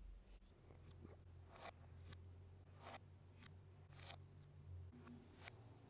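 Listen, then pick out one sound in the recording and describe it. Plastic toy bricks click together as pieces are pressed on.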